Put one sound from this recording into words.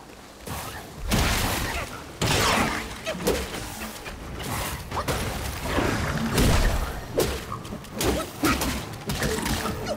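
A large beast roars and snarls.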